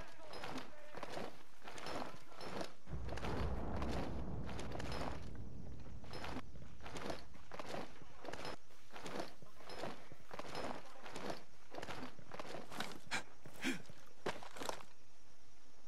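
Footsteps crunch and rustle through grass and brush at a steady pace.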